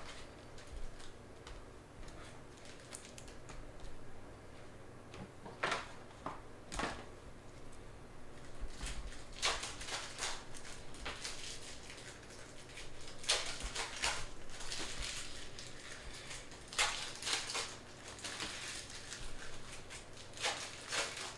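Trading cards rustle and slide between fingers.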